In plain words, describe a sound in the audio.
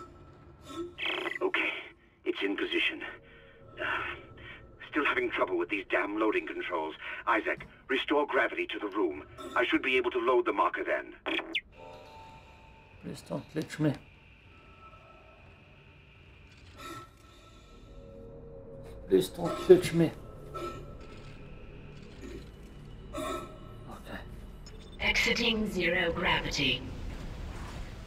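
A young man talks into a microphone.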